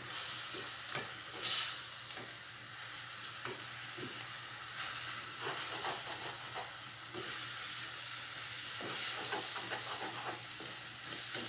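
A wooden spoon scrapes and clatters against a metal pan.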